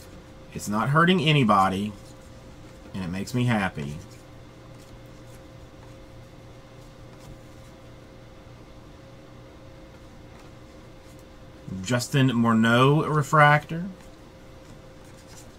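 Trading cards rustle and slide against each other in a person's hands.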